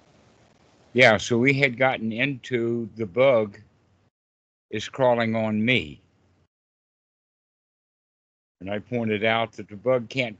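An elderly man talks with animation over an online call.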